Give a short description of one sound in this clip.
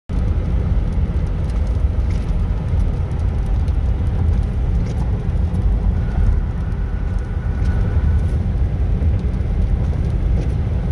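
Traffic rumbles steadily on a busy road nearby.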